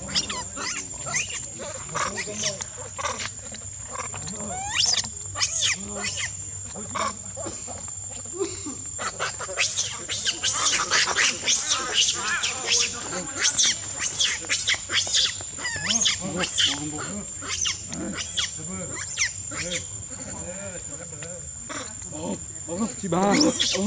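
Monkeys scamper over dry leaves and rustle through the undergrowth.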